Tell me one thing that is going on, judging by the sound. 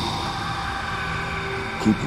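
A man speaks angrily nearby.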